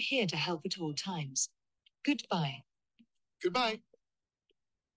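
A synthetic female voice speaks calmly through a loudspeaker.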